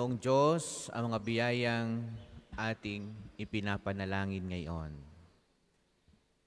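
A man speaks through a microphone in an echoing hall, in a measured, sing-song way.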